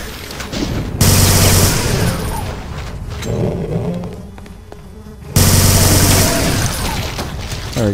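A heavy gun fires rapid bursts of shots.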